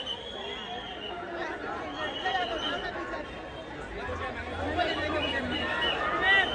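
A crowd of men and women chatters and calls out close by outdoors.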